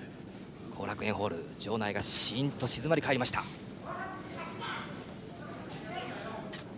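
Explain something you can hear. A crowd murmurs and calls out in a large hall.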